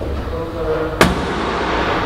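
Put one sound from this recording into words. A car hood slams shut.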